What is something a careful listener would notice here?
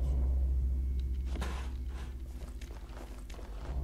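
A metal toolbox lid clicks open.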